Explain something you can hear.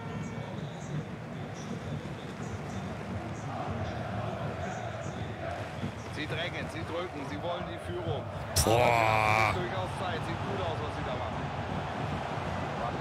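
A large stadium crowd murmurs steadily.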